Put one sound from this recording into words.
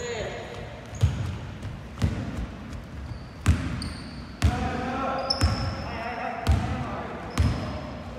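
A basketball bounces with heavy thuds in a large echoing hall.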